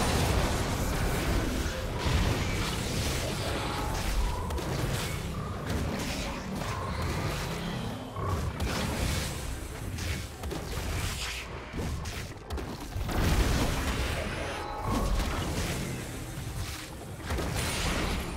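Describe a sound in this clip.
Game attack hits thud repeatedly.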